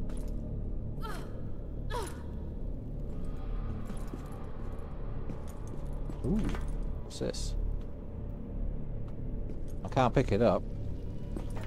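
A woman grunts as she jumps.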